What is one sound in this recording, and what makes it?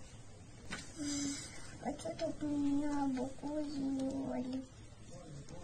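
A young girl reads aloud softly, close by.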